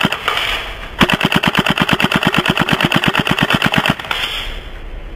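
An airsoft gun fires a long, steady stream of shots.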